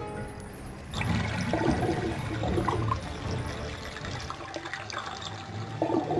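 Thick liquid gurgles and floods in.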